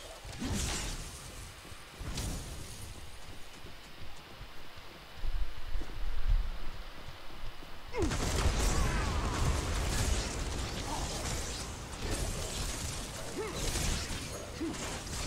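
Explosions burst loudly.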